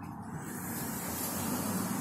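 A car drives past outside.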